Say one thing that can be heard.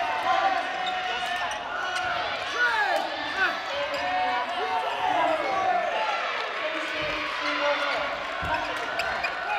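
Shoes squeak sharply on a hard court floor in a large echoing hall.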